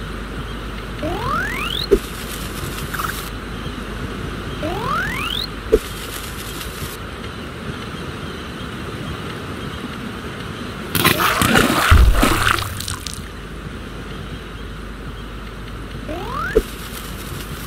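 A game cannon fires with a rising whoosh.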